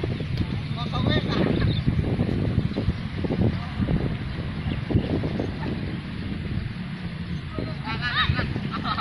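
Wind blows into the microphone outdoors.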